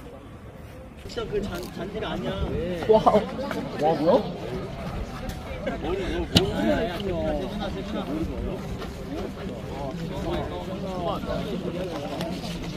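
Several young men chatter as they walk, outdoors.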